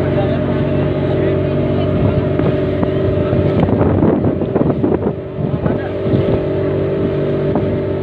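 A boat engine drones steadily throughout.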